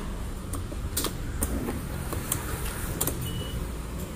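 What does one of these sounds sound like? A hand handles a scooter with soft clicks and knocks.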